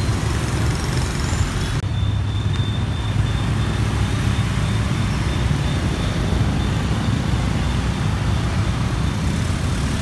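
Motor scooters ride past close by.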